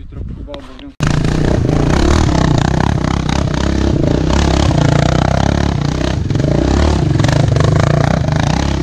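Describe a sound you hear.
A quad bike engine roars and revs.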